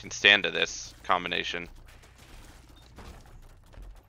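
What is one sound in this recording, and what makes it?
A video game laser beam blasts with a harsh buzzing roar.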